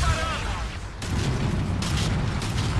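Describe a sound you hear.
A large explosion booms and roars.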